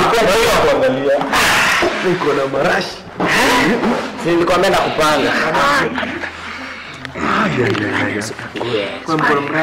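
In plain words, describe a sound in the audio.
A young man laughs and talks close by.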